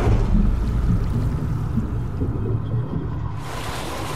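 A body plunges into water with a loud splash.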